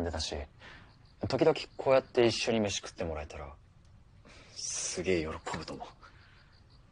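A young man speaks softly and close by.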